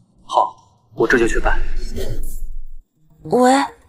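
A second young man speaks softly.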